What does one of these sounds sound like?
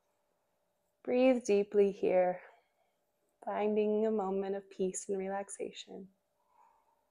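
A woman speaks calmly and gently, close by.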